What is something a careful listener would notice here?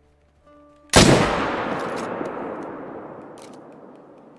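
A rifle shot booms and echoes away.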